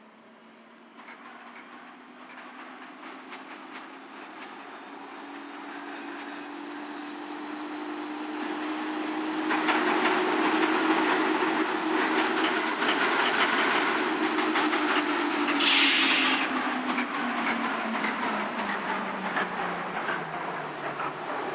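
A subway train approaches and rumbles past on the rails.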